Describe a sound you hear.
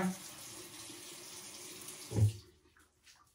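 Water splashes as a woman rinses her face.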